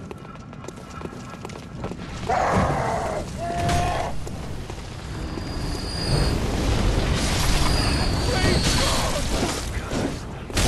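Blades slash and strike in a fight.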